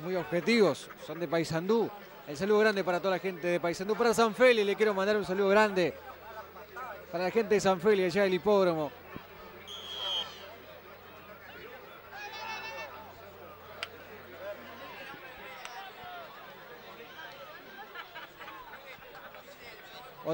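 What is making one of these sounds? A crowd murmurs faintly in an outdoor stadium.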